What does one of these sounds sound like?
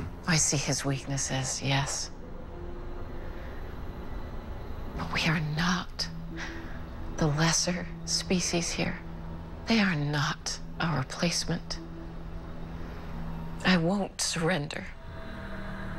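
A woman speaks quietly and emotionally, close by.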